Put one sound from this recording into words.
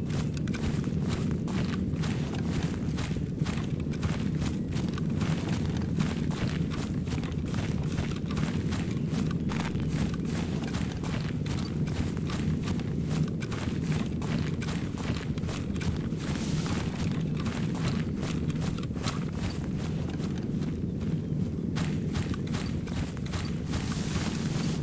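Footsteps rustle steadily through grass and undergrowth.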